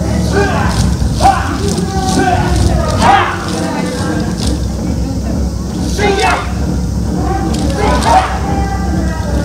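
A group of young dancers shout together in loud bursts.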